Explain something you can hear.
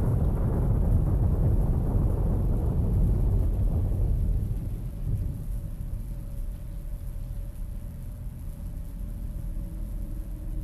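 Wind gusts and rumbles outdoors, then eases to a lower drone.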